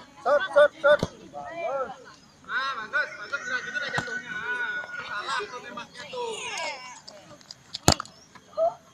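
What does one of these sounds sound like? A football thuds as a child kicks it.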